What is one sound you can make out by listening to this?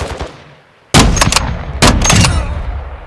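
A rifle fires loud shots that boom and echo.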